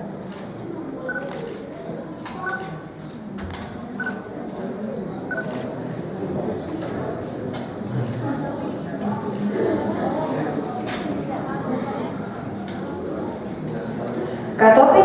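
A metal buckle clinks softly as it is fastened.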